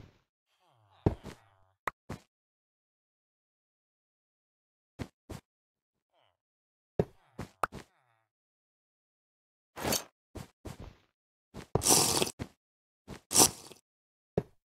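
Blocks break with short crunching pops.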